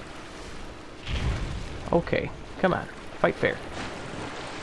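A sword slashes and strikes a huge creature.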